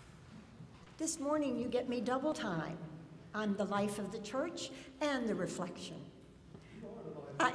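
An older woman speaks calmly through a microphone in an echoing hall.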